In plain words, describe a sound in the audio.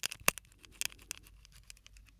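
Crinkly handling sounds crackle very close to a microphone.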